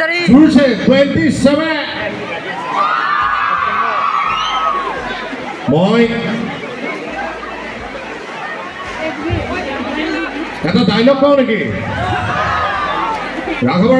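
A large crowd sings together outdoors.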